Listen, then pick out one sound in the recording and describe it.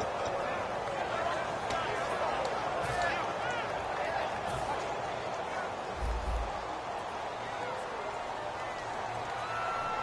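A stadium crowd cheers and whistles steadily.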